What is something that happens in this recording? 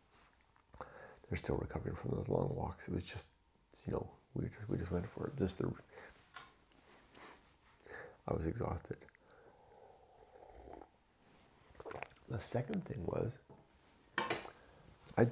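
A middle-aged man talks calmly and closely into a microphone.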